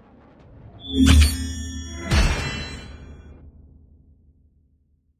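A victory fanfare plays with booming hits.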